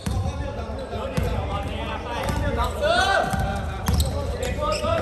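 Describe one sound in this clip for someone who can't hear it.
Young men call out to each other across a large echoing hall.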